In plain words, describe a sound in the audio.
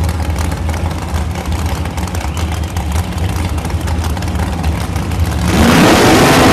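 Drag racing engines idle with a deep, rumbling burble.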